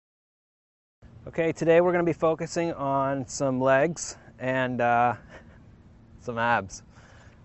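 A man speaks with animation into a clip-on microphone, outdoors.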